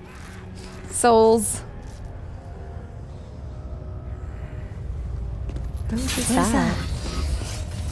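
A second woman speaks close to a microphone.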